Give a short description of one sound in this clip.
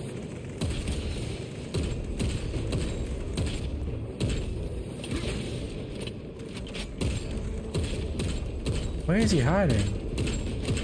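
Gunfire blasts rapidly and loudly.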